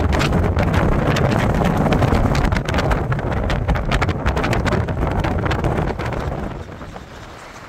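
Wind rushes loudly past a moving vehicle.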